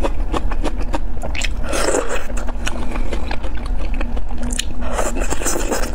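A woman slurps noodles close to a microphone.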